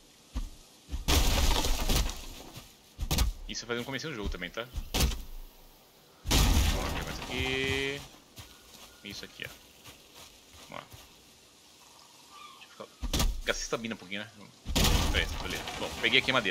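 A log bursts apart with a loud crash.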